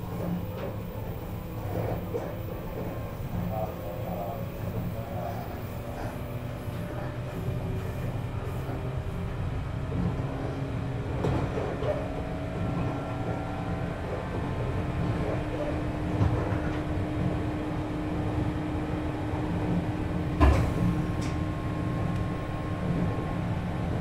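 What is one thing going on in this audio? An electric train's motors whine steadily, slowly rising in pitch as the train gathers speed.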